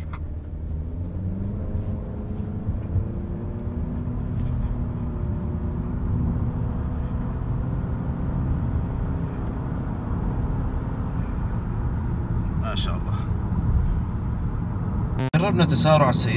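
A car engine revs up steadily as the car accelerates hard.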